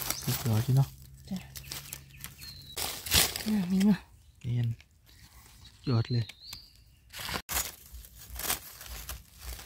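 A knife scrapes soil.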